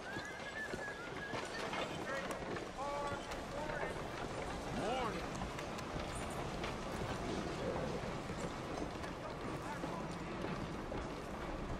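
A busy street murmurs with distant voices.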